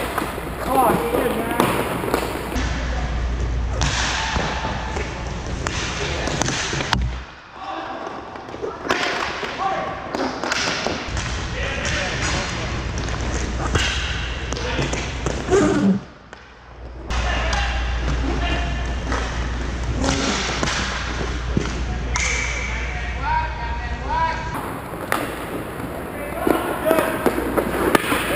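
Hockey sticks clack against a ball and against each other.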